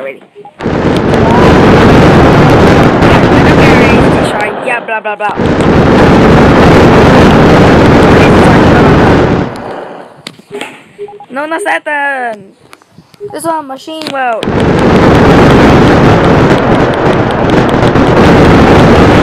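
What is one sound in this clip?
A huge explosion roars with a deep, rushing rumble.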